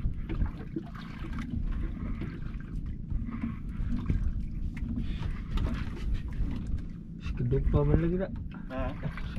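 Wind blows steadily across open water.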